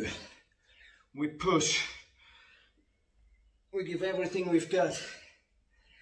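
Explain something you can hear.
A man speaks close by, slightly breathless.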